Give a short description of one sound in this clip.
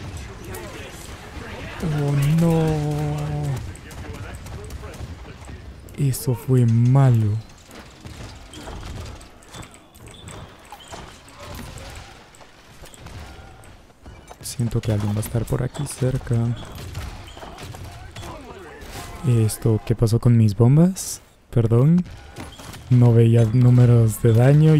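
Cartoonish weapons fire in quick bursts.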